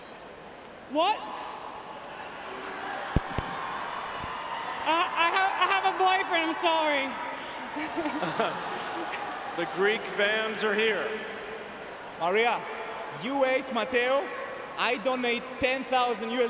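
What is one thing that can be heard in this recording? A large crowd murmurs and calls out in an open arena.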